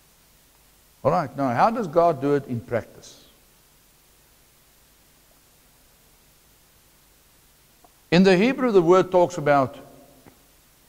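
A middle-aged man speaks calmly through a clip-on microphone, in short bursts.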